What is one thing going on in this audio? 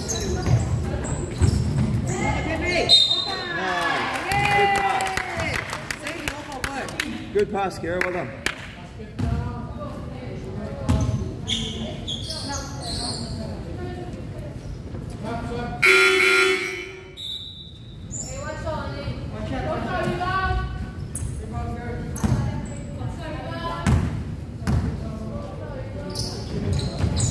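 Girls shout and call out across an echoing gym.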